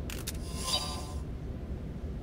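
A short electronic chime rings as a menu opens.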